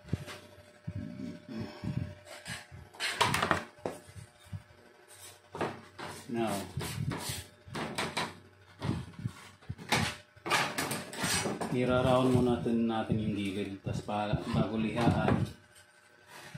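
Thin wooden boards clatter and knock on a hard surface.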